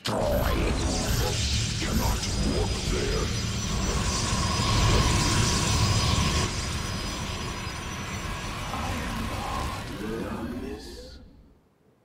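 Energy weapons fire and crackle in a battle.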